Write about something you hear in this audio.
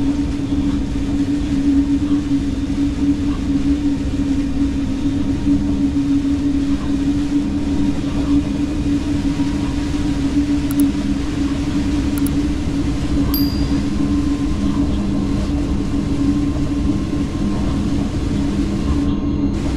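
Wheels rumble over the rails.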